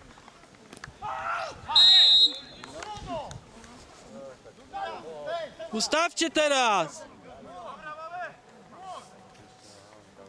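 Young men shout to each other outdoors across an open field.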